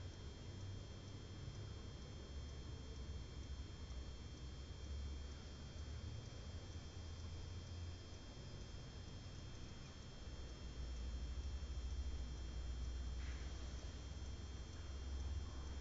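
A young boy breathes softly in his sleep.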